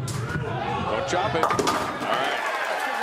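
Bowling pins crash and scatter.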